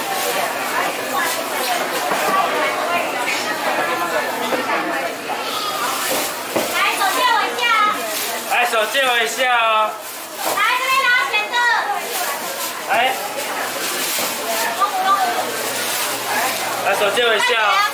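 Plastic bags rustle and crinkle as they are filled.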